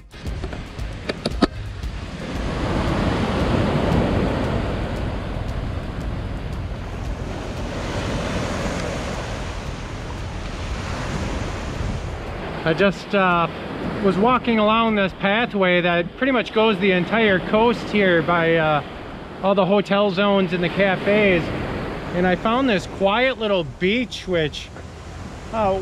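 Waves wash onto a pebble beach.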